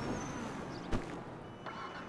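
A car engine runs as a jeep drives off.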